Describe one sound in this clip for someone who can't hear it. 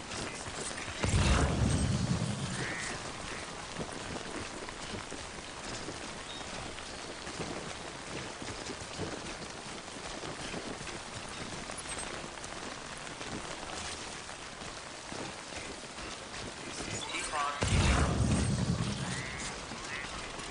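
A deep electronic pulse booms and slowly fades.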